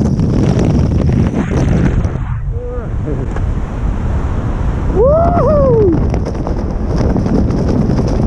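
Wind rushes more softly past under an open parachute.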